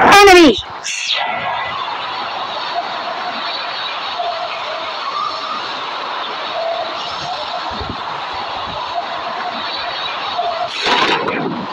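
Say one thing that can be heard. Wind rushes past a skydiver in freefall.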